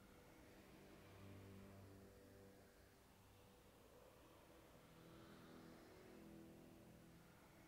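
A magical spell hums with a low, wavering drone.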